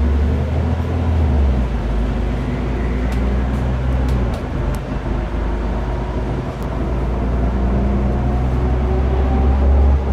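A bus engine hums and drones steadily from inside.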